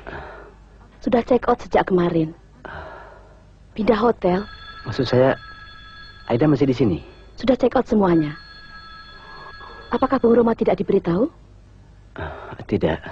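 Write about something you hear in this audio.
A woman speaks in a conversational tone.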